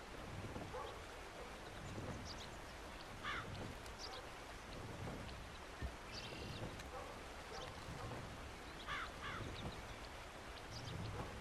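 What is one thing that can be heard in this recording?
Wind blows softly through pine trees outdoors.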